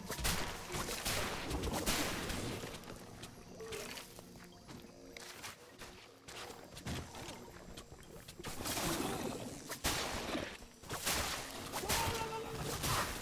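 Weapons clash and strike monsters with sharp magical bursts.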